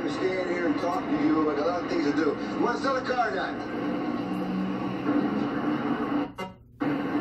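A man talks with animation, heard through a television speaker.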